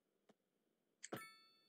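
A game's soft notification chime rings and fades.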